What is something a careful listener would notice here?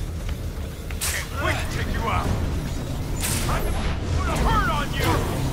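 Small robots whir and crackle with electric zaps.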